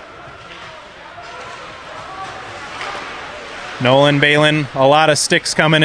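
Ice skates scrape and glide across an ice rink.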